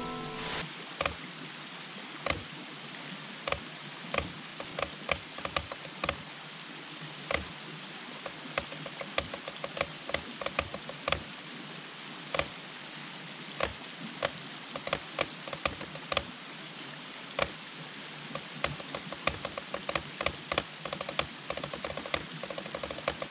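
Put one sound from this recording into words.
Drumsticks play flams and rudiments on a rubber practice pad.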